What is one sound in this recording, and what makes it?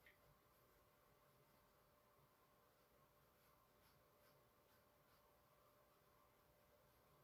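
A paintbrush softly strokes across a canvas.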